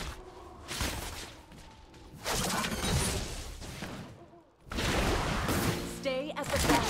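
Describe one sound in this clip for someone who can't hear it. Fantasy battle effects whoosh and clash in bursts.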